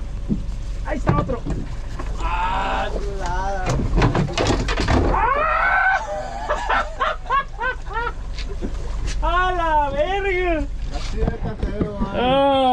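Men shout excitedly nearby outdoors.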